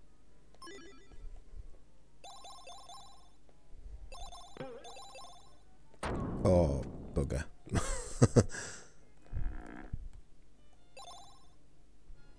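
Short bright game chimes ring out in quick runs.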